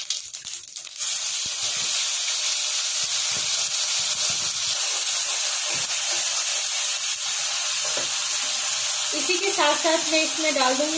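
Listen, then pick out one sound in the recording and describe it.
Food drops into hot oil and sizzles loudly.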